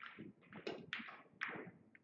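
A cue strikes a pool ball with a sharp tap.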